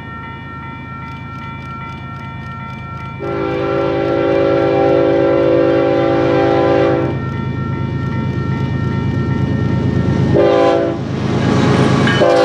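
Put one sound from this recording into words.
A railway crossing bell clangs rapidly.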